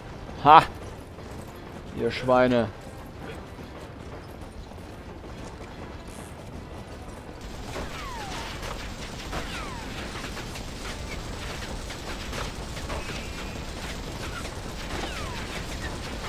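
A steam train rumbles steadily along the tracks.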